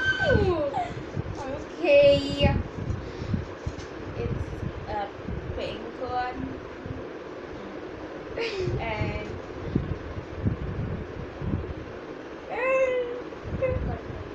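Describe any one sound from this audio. A young girl giggles close by.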